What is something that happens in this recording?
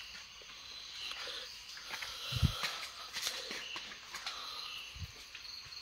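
Rice rustles and shifts in a woven basket.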